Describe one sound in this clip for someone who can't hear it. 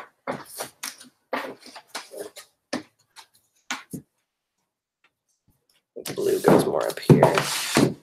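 Books knock and shuffle as they are handled.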